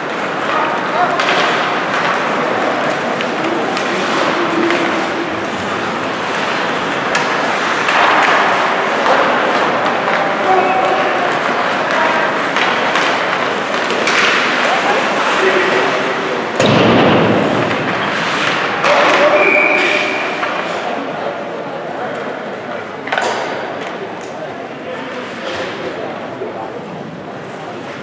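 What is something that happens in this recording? A crowd of spectators murmurs and calls out in a large echoing rink.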